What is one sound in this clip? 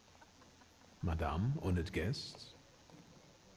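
A man announces to a room.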